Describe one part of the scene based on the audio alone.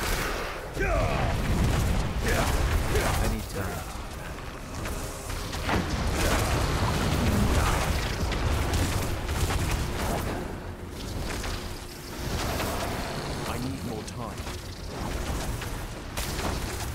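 Fiery spell blasts whoosh and rumble in a video game.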